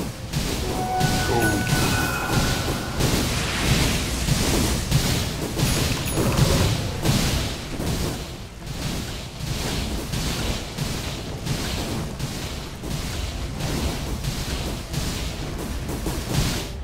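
Game spells whoosh and crackle in a fantasy battle.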